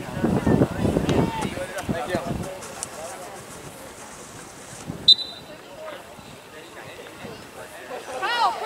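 Young men shout and cheer outdoors nearby.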